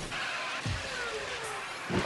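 Tyres skid and screech on asphalt during a drift.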